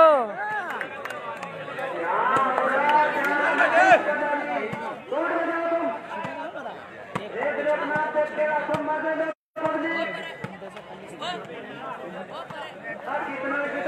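A crowd shouts and cheers outdoors.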